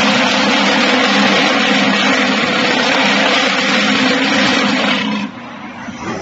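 A block-making machine vibrates with a loud, steady rattling hum, then stops abruptly.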